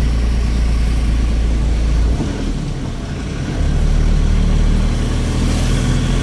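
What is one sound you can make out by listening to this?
Passing motorbikes buzz by close outside.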